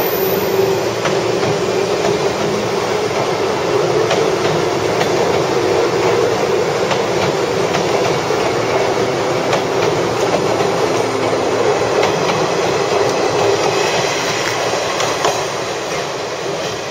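An electric train rumbles along the tracks, its wheels clattering over rail joints.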